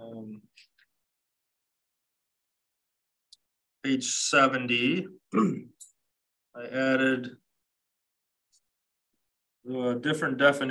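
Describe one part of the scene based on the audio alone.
A man speaks calmly through a microphone, in short bursts with pauses.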